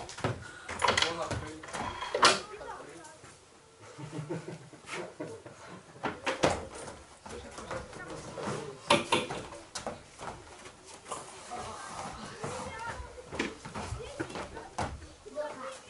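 Bare feet thump on foam mats.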